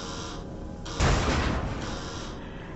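A heavy metal door bursts open with a loud bang.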